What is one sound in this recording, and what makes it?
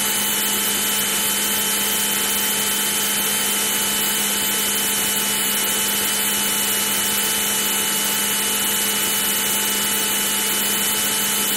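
A fighter jet engine drones steadily in flight, in old computer game sound.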